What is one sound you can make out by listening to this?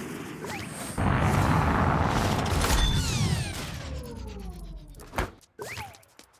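A rocket engine roars during liftoff.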